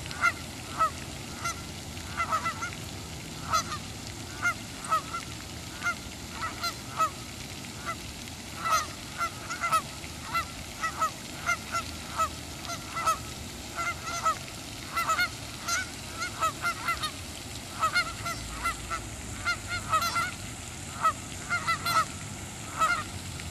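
A dog pads softly through grass.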